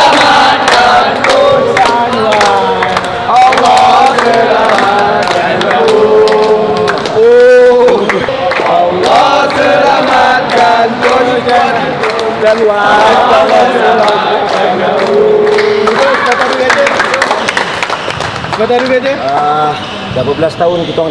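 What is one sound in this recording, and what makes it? A group of young men sings together loudly.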